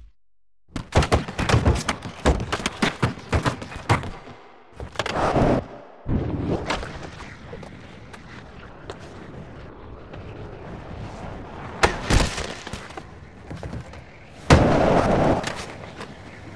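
Skateboard wheels roll and clatter over a ramp.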